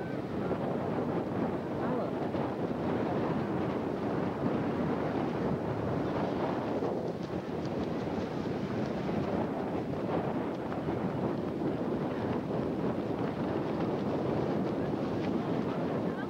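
Wind blows hard across the microphone outdoors.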